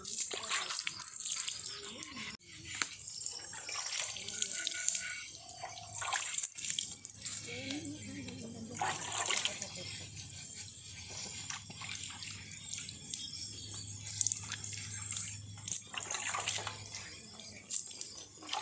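Hands rub and scrub a wet clay pot.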